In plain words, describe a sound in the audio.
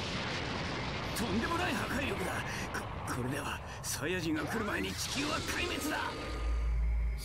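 A man speaks tensely in a gravelly voice.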